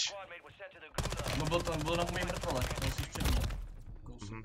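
Gunfire rattles in a burst.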